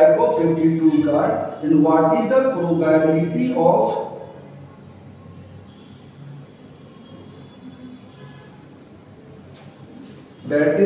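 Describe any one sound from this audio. A middle-aged man speaks calmly, like a teacher explaining.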